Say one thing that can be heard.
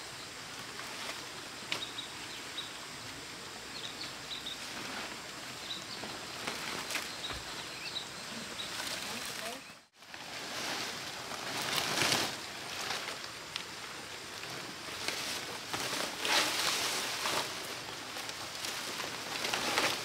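Dry palm leaves rustle and swish as they are handled.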